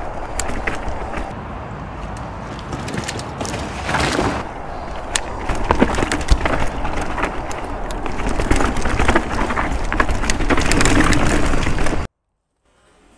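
A mountain bike rattles and clatters over a bumpy dirt trail.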